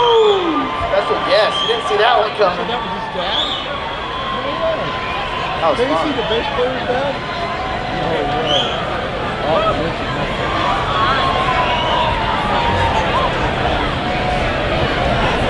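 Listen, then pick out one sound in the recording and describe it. A large crowd cheers, shouts and whistles in an echoing hall.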